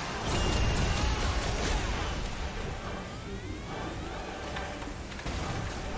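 Game weapons clash and spells burst loudly.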